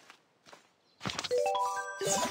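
A game menu opens with a short chime.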